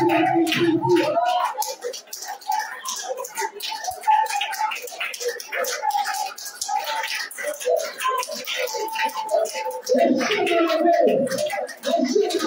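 A crowd of women and men pray aloud together with fervour.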